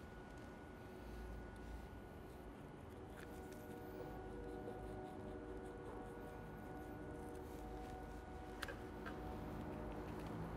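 A knife slices softly through raw meat.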